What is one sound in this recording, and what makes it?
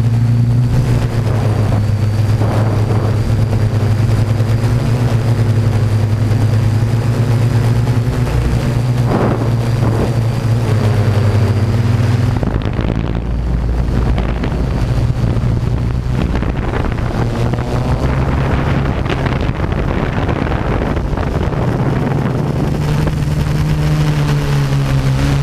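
Drone propellers hum and whine steadily, close by.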